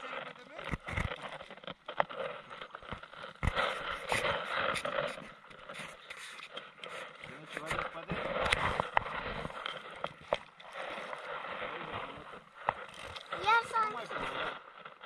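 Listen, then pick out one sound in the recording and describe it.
Water laps and splashes gently against the side of an inflatable boat.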